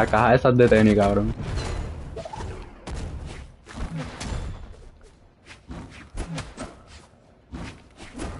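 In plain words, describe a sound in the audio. Sword slashes whoosh and strike in quick bursts.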